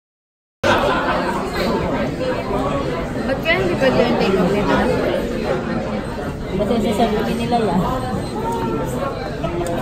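A second young woman talks and laughs close by.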